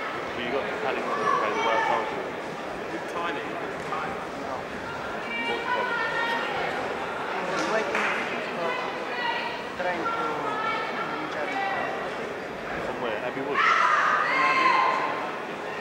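A crowd of men shouts and cheers in a large hall.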